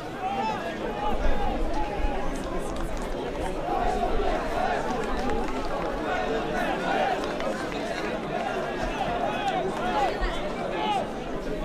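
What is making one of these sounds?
A crowd of spectators murmurs and calls out outdoors.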